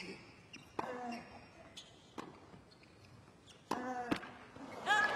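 A tennis ball is struck sharply back and forth.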